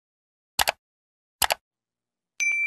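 A mouse button clicks twice.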